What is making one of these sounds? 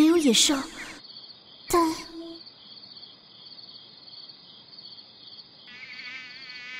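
A mosquito whines with a steady, high buzz.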